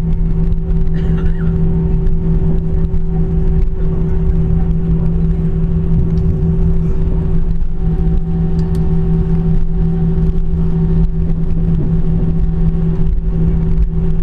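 Jet engines hum steadily and loudly as an airliner taxis.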